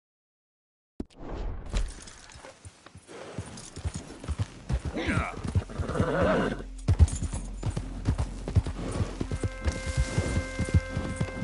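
Horse hooves thud steadily on grass and dirt.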